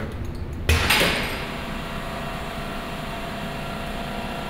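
Heavy metal doors unlatch with a loud clunk and swing open, echoing slightly.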